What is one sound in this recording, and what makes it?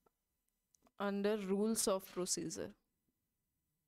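A young woman speaks clearly into a close microphone.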